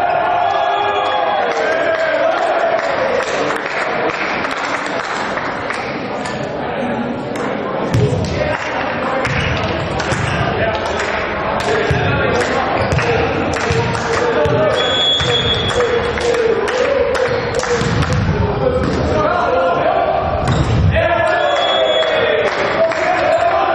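Sports shoes squeak on a hall floor.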